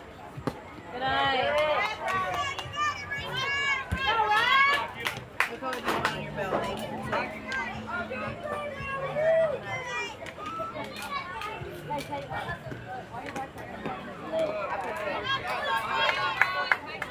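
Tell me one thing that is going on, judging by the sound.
Young girls cheer and chant loudly nearby.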